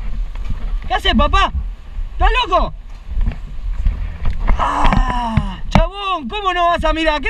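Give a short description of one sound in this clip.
A man shouts in distress close by.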